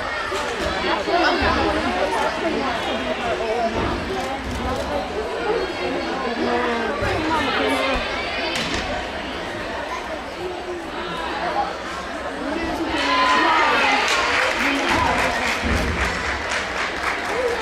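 People chatter throughout a large echoing hall.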